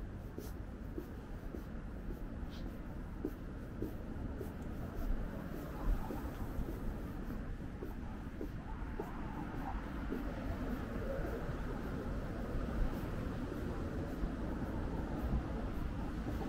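Footsteps tap steadily on pavement close by.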